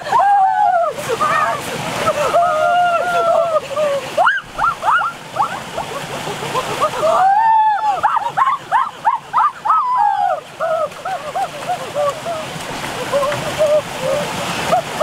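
A young boy talks excitedly up close.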